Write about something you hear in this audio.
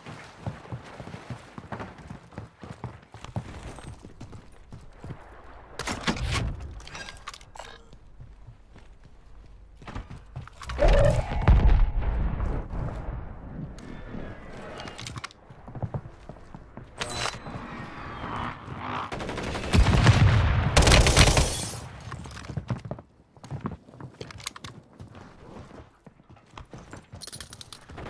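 Footsteps thud steadily on hard floors and stairs.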